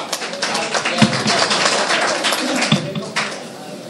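A microphone stand knocks and rattles as it is adjusted.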